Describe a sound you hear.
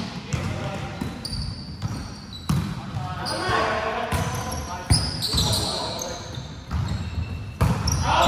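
A volleyball thuds sharply as players hit it, echoing in a large hall.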